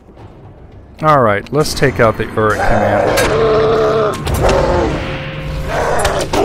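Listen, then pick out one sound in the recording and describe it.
A large creature roars and growls.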